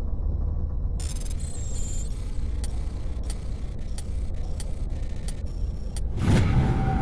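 Electronic beeps and clicks sound in quick succession.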